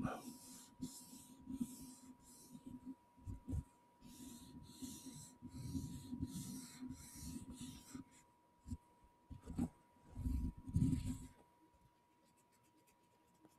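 Small plastic parts click and tap in a man's hands.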